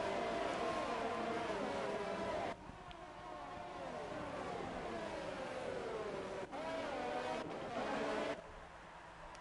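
Racing car engines whine at high revs, rising and falling in pitch.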